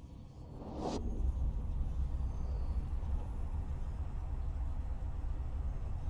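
A spaceship's engine rumbles low and steady.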